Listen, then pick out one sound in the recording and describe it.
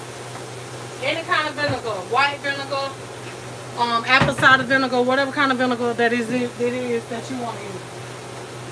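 A woman talks animatedly close by.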